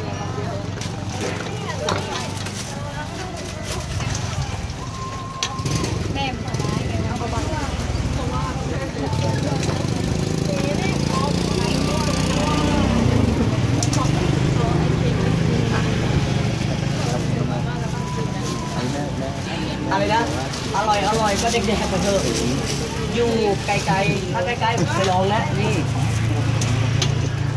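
Several adults chatter at close range.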